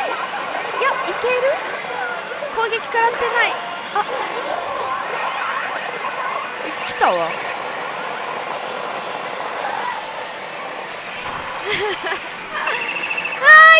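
A slot machine plays electronic music and chiming effects.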